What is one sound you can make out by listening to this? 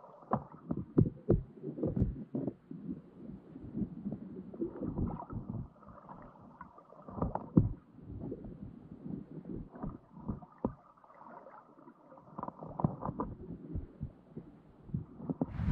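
Crabs click and crunch close by underwater as they pick at bait.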